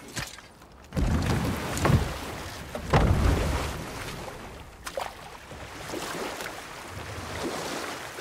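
Oars splash in water as a boat is rowed.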